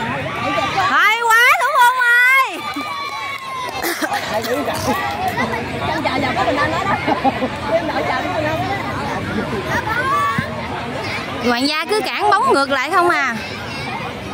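A woman close by cheers with animation.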